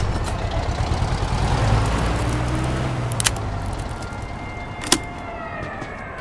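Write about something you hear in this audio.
Metal scrapes and clicks at a car door lock.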